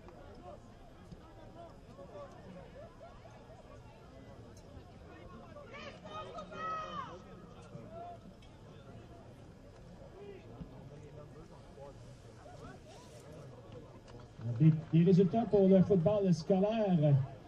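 A crowd of spectators chatters faintly in the distance outdoors.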